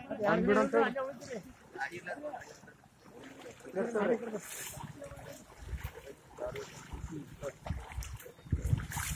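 Water splashes and sloshes underfoot.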